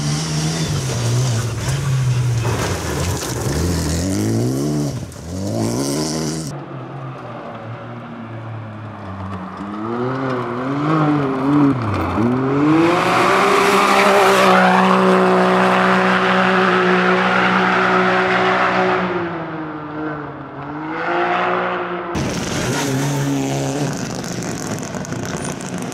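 A racing engine roars and revs hard as cars speed past, one after another.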